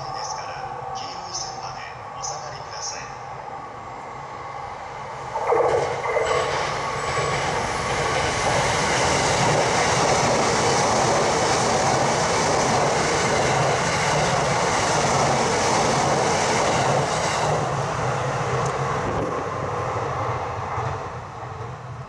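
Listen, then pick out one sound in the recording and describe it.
An electric commuter train approaches and rushes past at speed.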